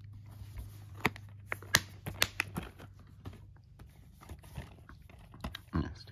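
Plastic cases knock and tap against each other.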